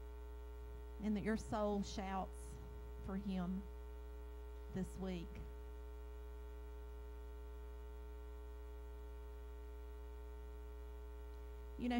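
A woman speaks slowly into a microphone, heard through loudspeakers in a large room.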